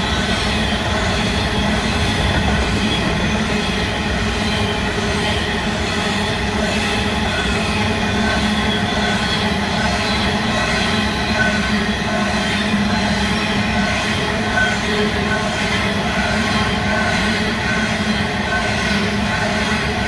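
Metal wheels squeal against the rails.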